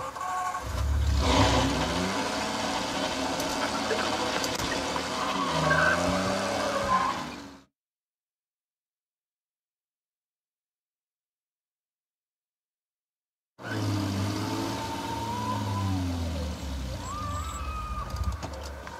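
A car engine starts and revs as the car drives off.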